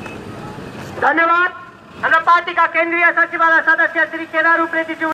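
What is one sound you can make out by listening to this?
A young man speaks loudly close by.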